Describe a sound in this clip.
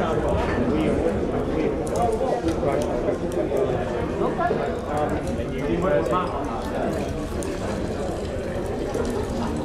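A crowd of men and women chatter and laugh indoors.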